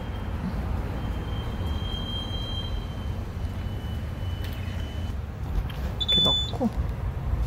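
A fuel pump beeps with short high tones.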